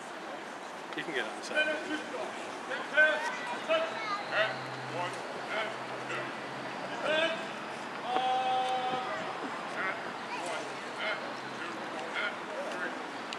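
Spectators chat quietly nearby outdoors.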